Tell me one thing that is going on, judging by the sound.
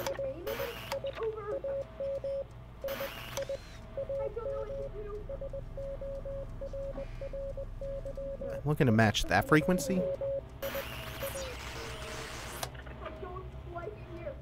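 A radio gives off short, repeated electronic beeps.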